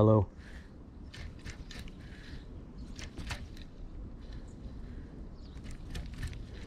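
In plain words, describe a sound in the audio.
A fishing reel whirs and clicks as its handle is cranked close by.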